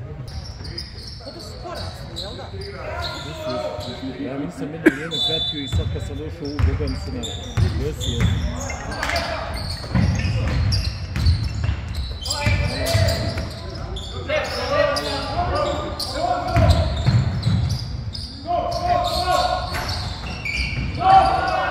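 A basketball thumps on a wooden floor in an echoing hall.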